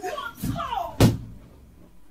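A body thumps heavily onto the floor.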